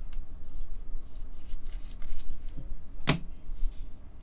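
Foil card packs crinkle in gloved hands.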